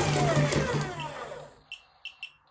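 A toy dragon lets out a loud electronic roar.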